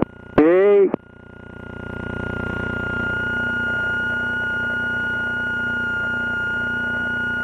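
A small plane's engine drones steadily and grows louder.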